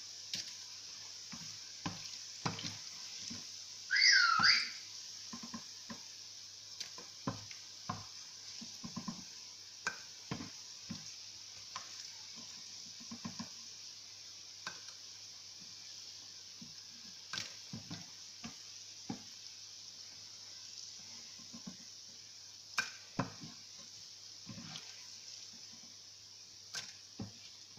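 A metal slotted spatula clinks against a metal pan.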